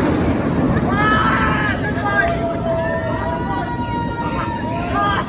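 Riders on a roller coaster scream in the distance.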